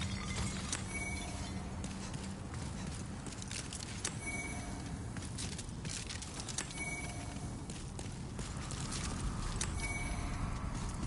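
A soft chime rings several times.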